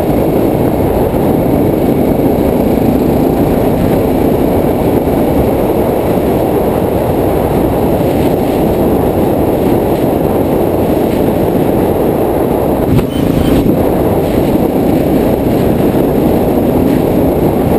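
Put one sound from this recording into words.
A dirt bike engine drones steadily close by.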